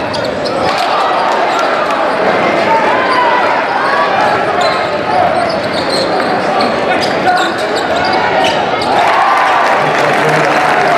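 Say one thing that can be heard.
A crowd cheers and shouts throughout a large echoing gym.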